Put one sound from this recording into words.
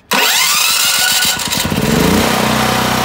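A generator engine starts up with a rising whine.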